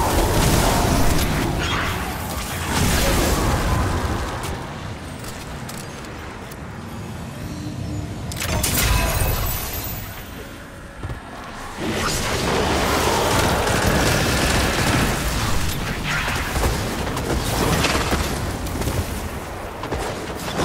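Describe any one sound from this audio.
Gunfire and energy blasts crack in bursts.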